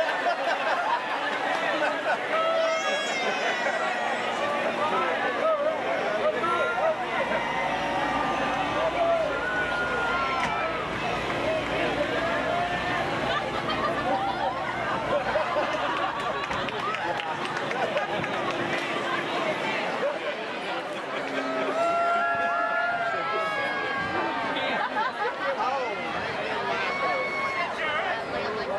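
A large outdoor crowd chatters and cheers.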